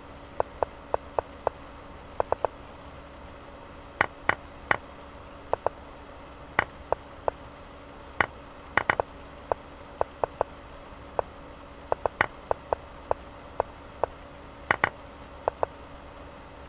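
Chess pieces click sharply as they are moved, again and again.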